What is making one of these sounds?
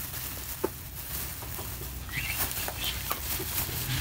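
Leafy greens rustle as they are dropped on the ground.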